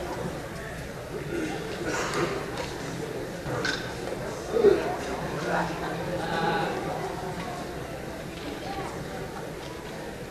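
A woman speaks calmly into a microphone over a loudspeaker.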